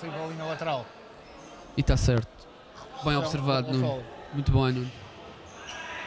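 A referee's whistle blows sharply in a large echoing hall.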